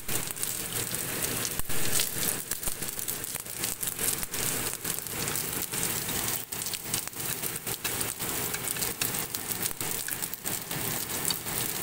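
Chopsticks scrape and clatter against a frying pan.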